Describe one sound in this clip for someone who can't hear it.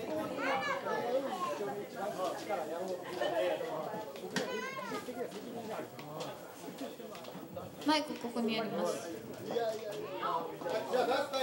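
A crowd of men and women chatter loudly all around in a busy room.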